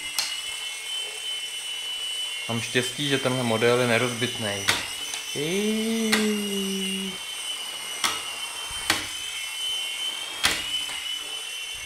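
A small toy motor whines steadily at a high pitch.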